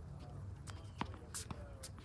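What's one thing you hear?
A tennis racket hits a ball with a sharp pop.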